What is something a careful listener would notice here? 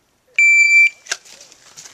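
A shot timer beeps once.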